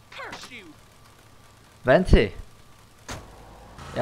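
A car door opens with a clunk.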